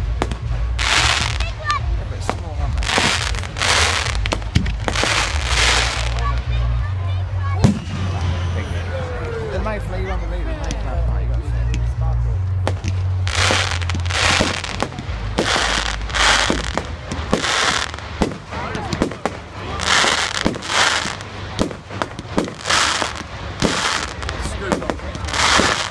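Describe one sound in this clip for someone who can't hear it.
Fireworks crackle and hiss in long bursts.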